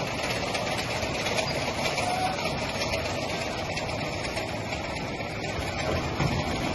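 Packaging machinery hums and whirs steadily.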